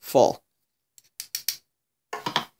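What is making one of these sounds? A metal spoon scrapes and taps against a metal filter.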